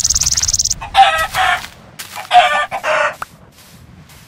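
A chicken clucks.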